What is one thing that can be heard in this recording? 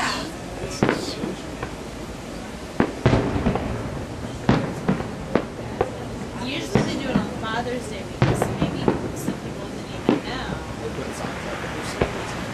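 Aerial firework shells burst with sharp bangs in the distance, echoing across open ground.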